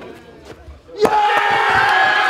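A bowling ball crashes into pins.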